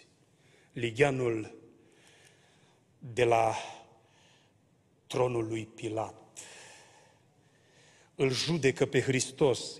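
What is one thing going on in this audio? A man speaks with animation into a microphone, his voice echoing in a large hall.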